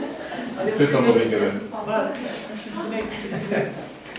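A woman chats quietly with people nearby.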